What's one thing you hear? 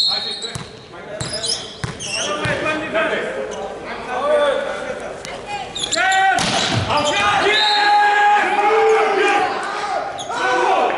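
Young men shout and call out in a large echoing hall.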